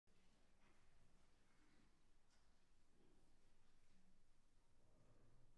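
A grand piano plays softly in a large, echoing hall.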